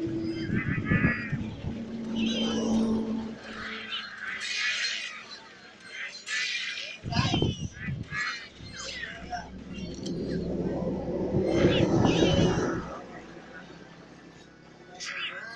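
Cartoonish battle sound effects clang and whoosh in quick bursts.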